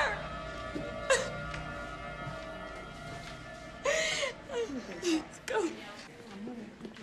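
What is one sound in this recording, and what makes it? A woman screams and sobs hysterically close by.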